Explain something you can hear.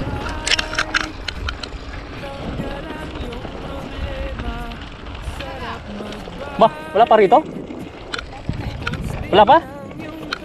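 Bicycle tyres crunch over rough gravel.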